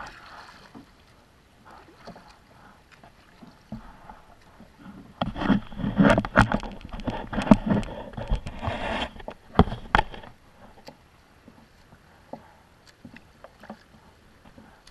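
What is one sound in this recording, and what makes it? Water laps and splashes against the side of a kayak.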